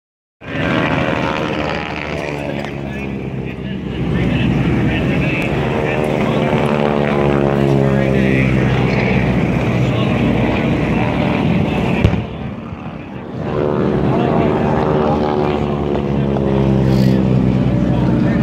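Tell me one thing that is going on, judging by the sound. Aircraft engines roar loudly overhead, their pitch sliding up and down as the planes pass.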